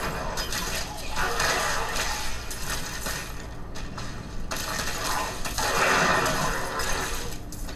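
Weapons clash and strike in combat.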